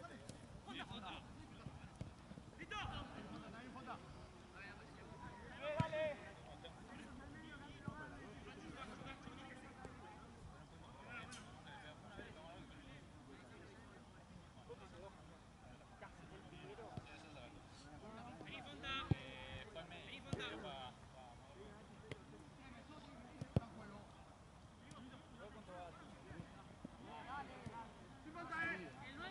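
Men shout and call out to each other across an outdoor field.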